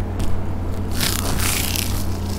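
A woman bites crunchily into fried food close to a microphone.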